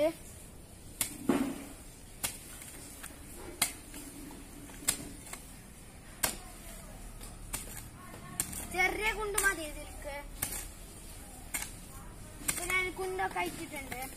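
A hoe chops into soil with repeated dull thuds.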